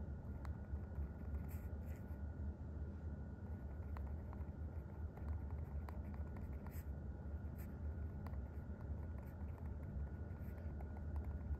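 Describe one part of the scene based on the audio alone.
A pen scratches softly on paper as it writes.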